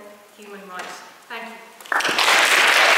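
A woman speaks into a microphone, heard over a loudspeaker in a large hall.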